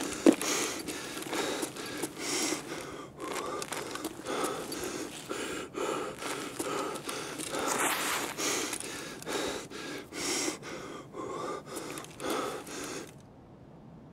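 Footsteps crunch steadily across a floor strewn with debris.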